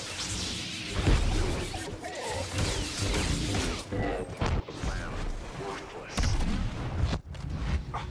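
Blaster shots zap and crackle.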